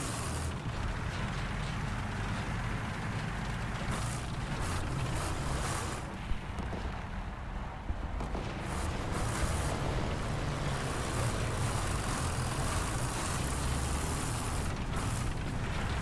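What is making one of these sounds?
A heavy tank engine rumbles and clanks steadily.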